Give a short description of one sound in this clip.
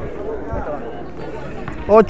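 A football is kicked across a hard court.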